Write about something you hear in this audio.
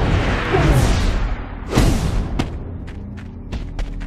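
A body slams hard onto the ground.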